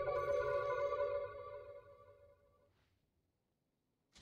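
A bright musical chime rings out and slowly fades.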